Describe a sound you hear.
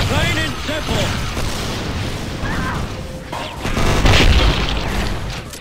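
An energy beam hums and crackles.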